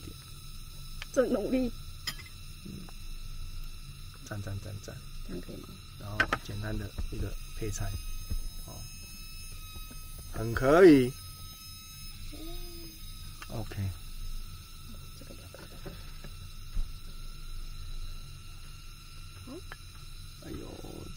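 A rice paddle scrapes and taps against a bowl.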